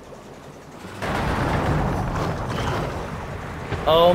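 A blast bursts with a rumbling roar.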